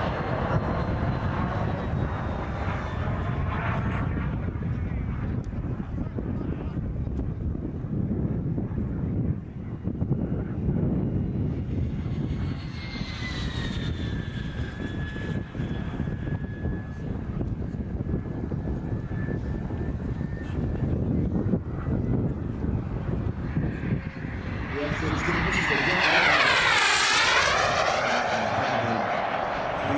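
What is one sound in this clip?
A jet engine roars steadily high overhead, then swells loudly and sweeps down in pitch as the aircraft passes close by.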